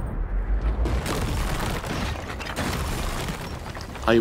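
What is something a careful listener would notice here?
Explosions boom and rumble amid crackling debris.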